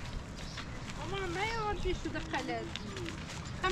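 A young child calls out in a high voice nearby.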